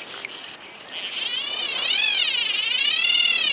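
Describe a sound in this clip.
A fishing reel's drag whirs steadily as line is pulled out.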